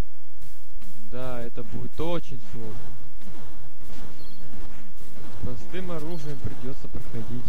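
Retro electronic game sound effects bleep, buzz and sweep in pitch.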